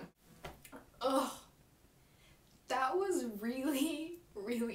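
A young woman speaks with strain close by.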